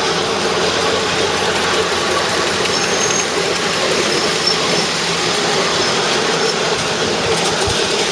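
A small steam train chugs and rattles along its track.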